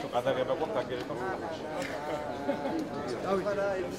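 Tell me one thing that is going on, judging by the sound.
Men talk and laugh nearby.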